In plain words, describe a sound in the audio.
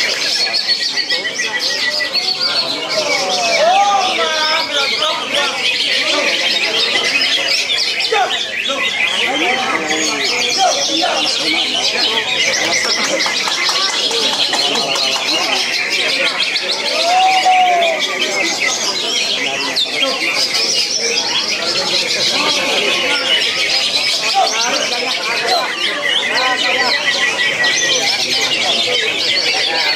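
Many caged birds chirp and twitter busily in a large echoing hall.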